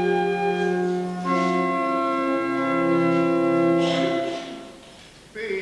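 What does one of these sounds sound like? A congregation sings a hymn together in an echoing hall.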